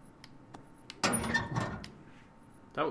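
A metal stove door clanks and creaks open.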